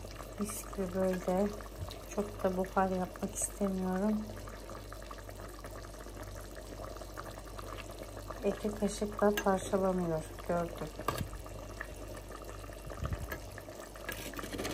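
A stew simmers and bubbles softly in a pot.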